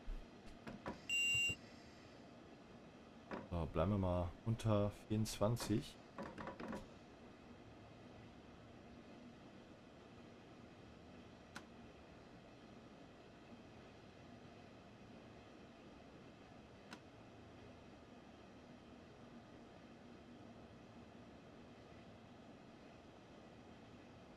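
A train rumbles and hums steadily as it runs along the track.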